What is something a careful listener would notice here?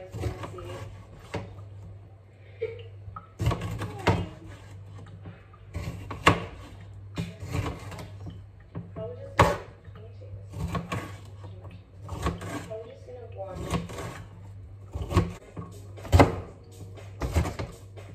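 A knife chops on a cutting board with sharp, repeated knocks.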